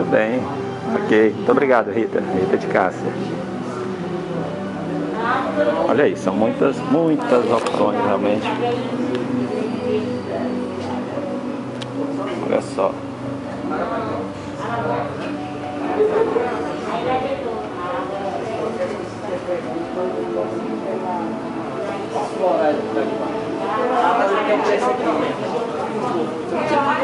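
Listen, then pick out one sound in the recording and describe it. A young woman talks calmly and close by, her voice slightly muffled.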